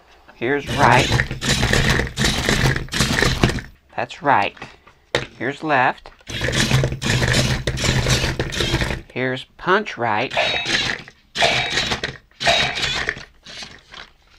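A toy robot's motors whir as its arms swing.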